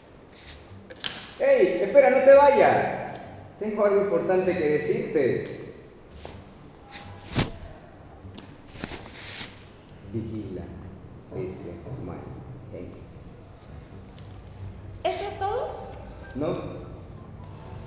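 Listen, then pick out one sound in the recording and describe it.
A woman speaks loudly and expressively.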